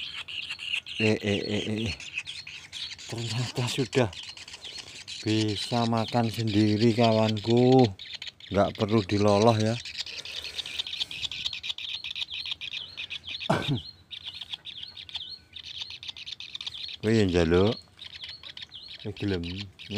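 A bird gives loud, harsh, repeated calls close by.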